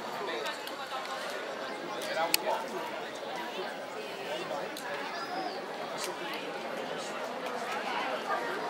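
A crowd of men and women chatters outdoors in the open air.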